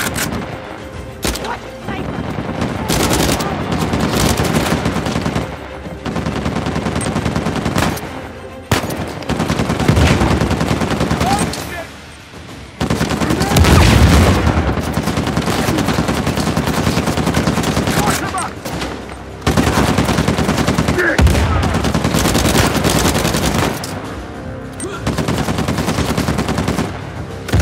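Guns fire in rapid bursts, loud and close.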